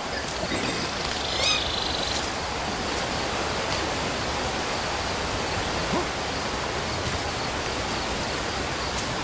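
Leaves rustle as a chimpanzee moves through dense undergrowth.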